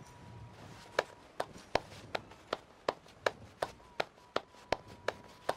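A person claps hands in a steady rhythm.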